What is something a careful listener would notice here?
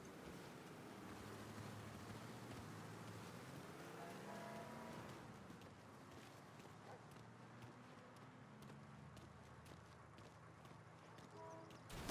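Footsteps crunch on a road at a steady pace.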